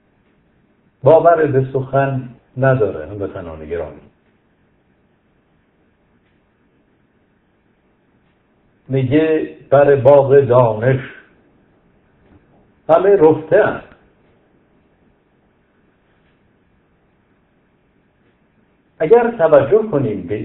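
A middle-aged man speaks calmly into a close microphone, in short bursts with long pauses.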